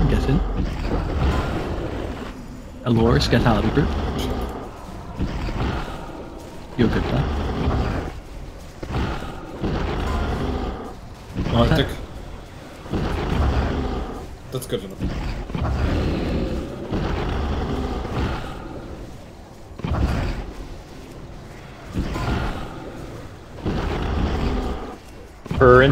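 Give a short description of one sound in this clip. Magic spells whoosh and crackle in a busy fantasy battle.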